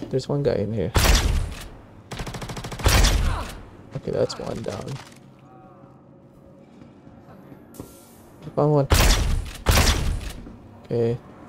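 Gunshots fire in loud bursts.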